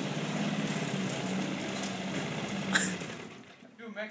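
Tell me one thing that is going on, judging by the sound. A lawn mower engine runs steadily nearby, then cuts out.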